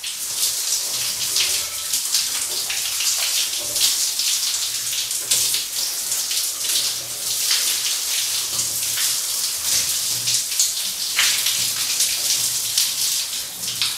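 Water from a shower sprays and splashes steadily.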